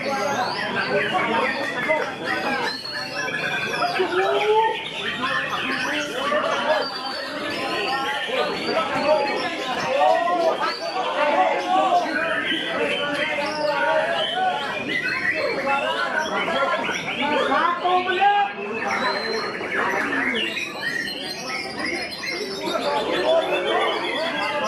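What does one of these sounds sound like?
A songbird sings close by in loud, varied whistles and chirps.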